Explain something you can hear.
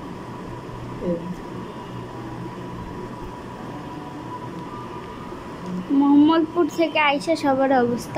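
A woman talks close by.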